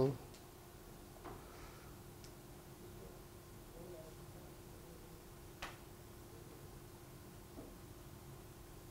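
A man speaks quietly at a distance in a large room.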